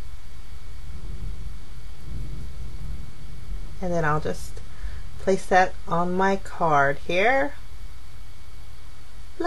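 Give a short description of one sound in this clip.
Paper rustles softly as hands handle a card.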